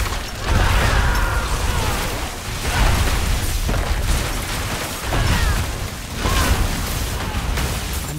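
Lightning strikes crack sharply.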